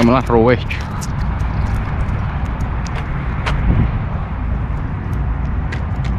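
A fish flops and slaps on concrete.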